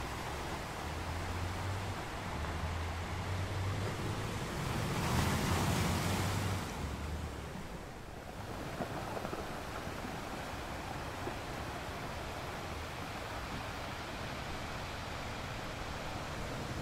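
Ocean waves break and wash over rocks, with a swell rising around the middle.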